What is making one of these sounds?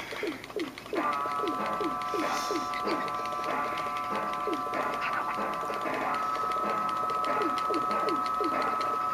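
Bright electronic game music plays with steady held notes.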